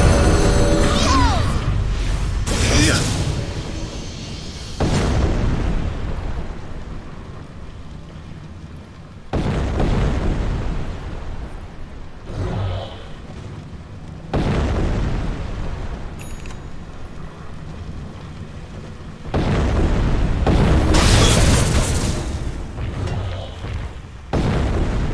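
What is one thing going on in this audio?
Magic blasts and clashing weapon effects crash and boom in a loud battle.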